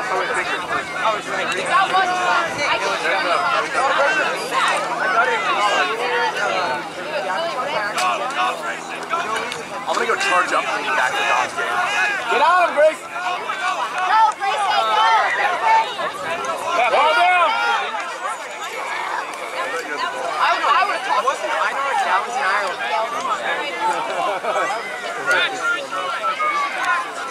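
Young players shout to each other across the field.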